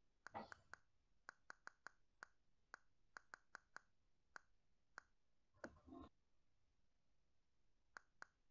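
Keys on a keyboard click one after another in quick, short taps.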